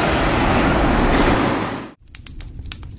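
A heavy truck rumbles past loudly.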